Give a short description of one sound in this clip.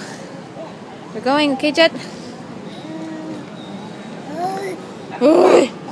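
A small child babbles close by.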